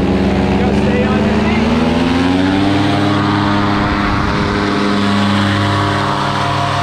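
A paramotor engine drones loudly and rises in pitch as it revs up.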